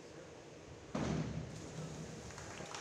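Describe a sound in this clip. A diver splashes into the water of an echoing indoor pool.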